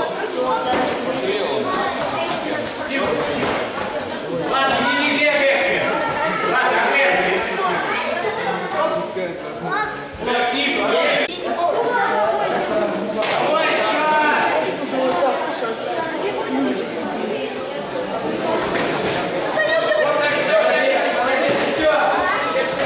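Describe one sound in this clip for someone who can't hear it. A crowd of people talk and shout in a large echoing hall.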